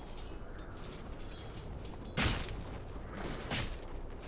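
Game characters clash in battle with magic blasts and sword hits.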